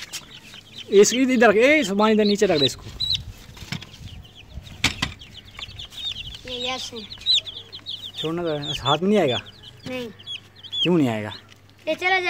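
Chicks peep rapidly and high.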